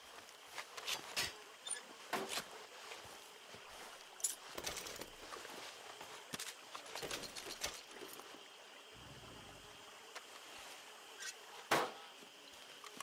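Wooden drawers slide and knock open.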